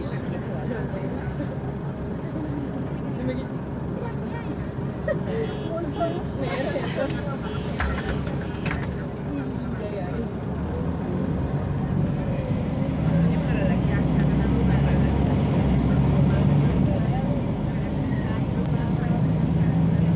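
A diesel city bus engine drones, heard from inside the bus as it drives.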